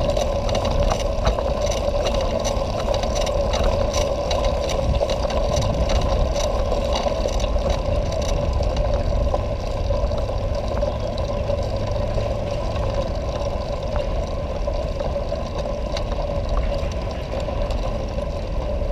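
Bicycle tyres rattle steadily over cobblestones.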